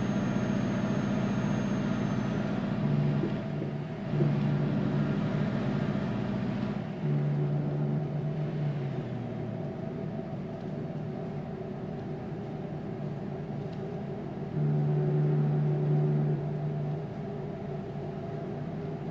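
A truck engine drones steadily.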